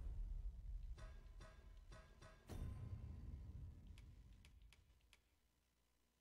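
Short menu blips chime as selections change.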